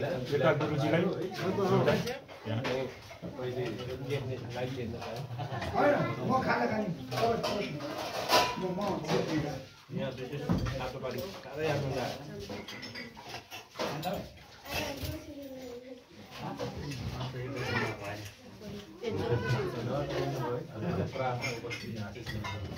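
Several men talk at once in a lively murmur nearby.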